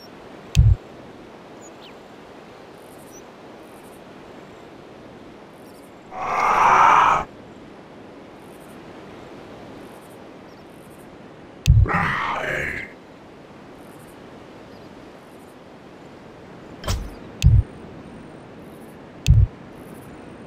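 Short electronic game chimes sound now and then as messages pop up.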